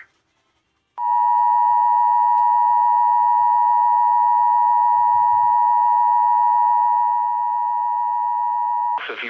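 A loud, steady two-note alert tone plays through a small speaker.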